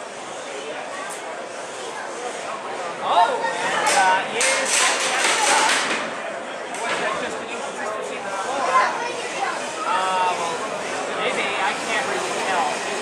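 Small robot wheels whir across a hard floor.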